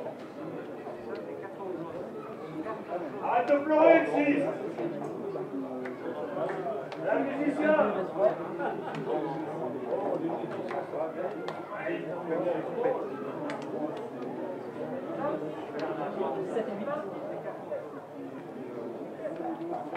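Several men shout and talk outdoors at a distance.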